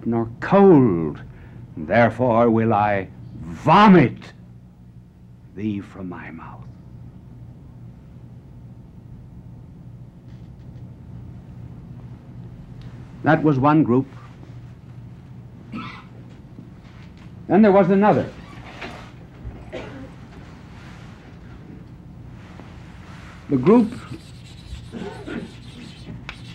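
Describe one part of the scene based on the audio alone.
A middle-aged man speaks dramatically into a microphone in bursts, with long pauses between.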